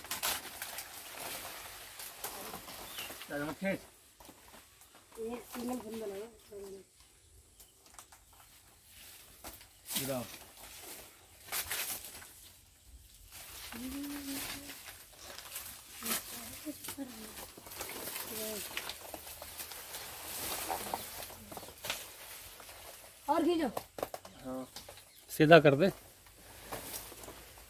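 Large leaves rustle and swish as they are pulled and handled.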